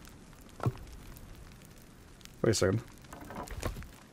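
A wooden log thuds down onto planks.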